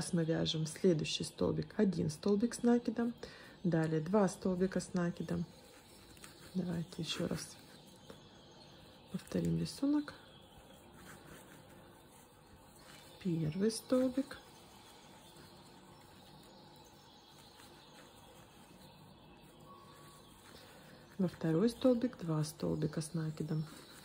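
A crochet hook softly pulls yarn through stitches.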